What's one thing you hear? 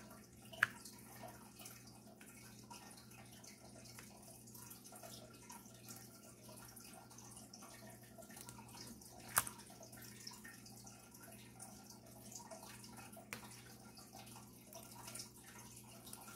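A pen tool taps and clicks softly against a plastic tray.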